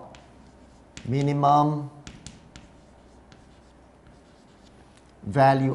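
A marker squeaks and taps on a board.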